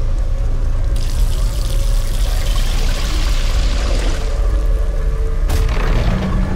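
Water gushes and splashes onto stone.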